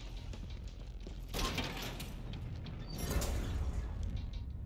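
A metal gate rattles and clanks open.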